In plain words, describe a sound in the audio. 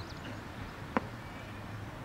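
A cricket bat strikes a ball with a sharp crack in the open air.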